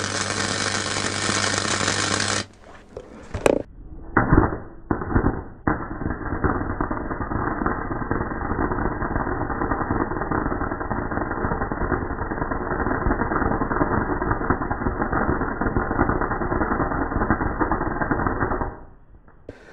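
An arc welder crackles and hisses steadily.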